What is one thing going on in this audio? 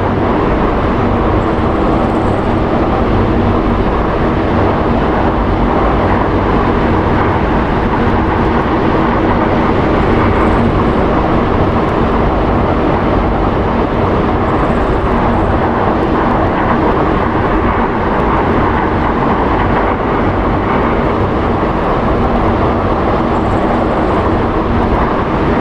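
A four-engine turboprop plane taxis with its propellers droning.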